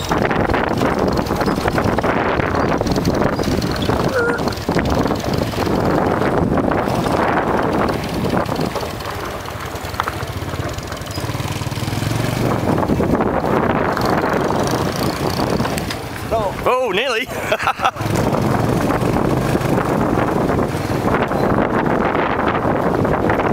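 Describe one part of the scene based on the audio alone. A motorbike engine hums steadily close by.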